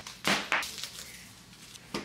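A rug unrolls with a soft rustle across a hard floor.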